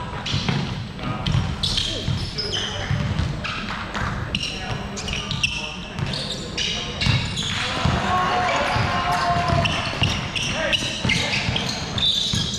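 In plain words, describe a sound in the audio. Players' footsteps pound and shuffle across a wooden floor.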